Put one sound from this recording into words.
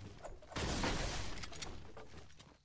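A pickaxe strikes with a loud crunching impact.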